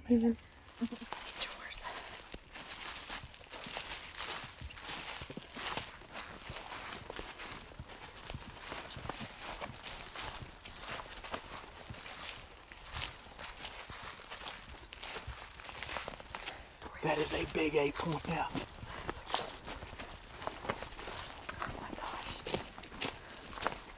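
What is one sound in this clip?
Footsteps crunch through dry leaves and brush outdoors.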